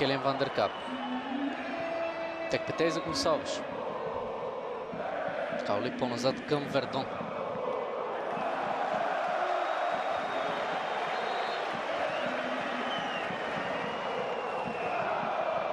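A large stadium crowd chants and roars throughout.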